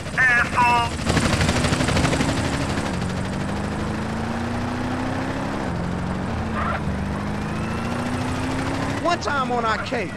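A car engine hums and revs as a car drives along.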